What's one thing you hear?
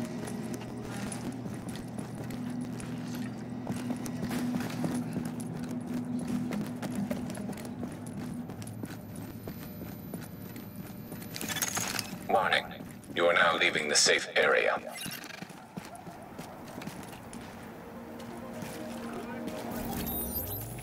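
Footsteps walk across a hard floor and up stairs.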